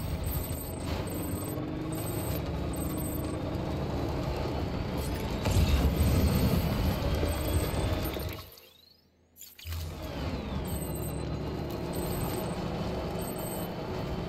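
Tyres crunch and bump over rocky ground.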